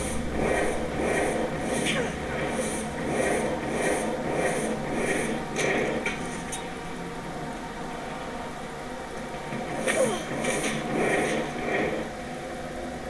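Fire spells burst and roar in quick, repeated blasts.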